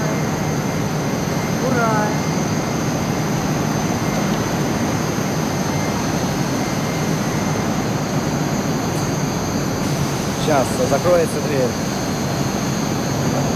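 A metro train hums while standing at a platform in an echoing underground station.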